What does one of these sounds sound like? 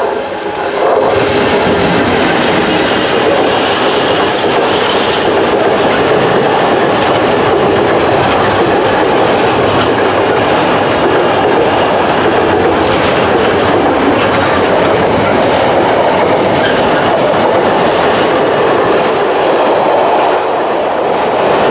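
A long freight train rumbles and clatters past close by on the rails.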